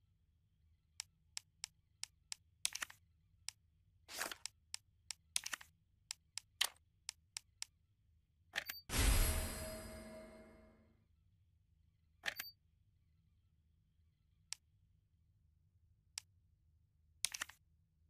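Short electronic menu clicks tick.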